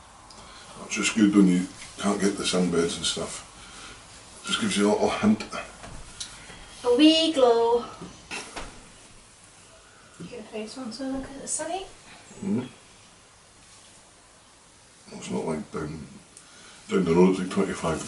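A woman talks casually close by.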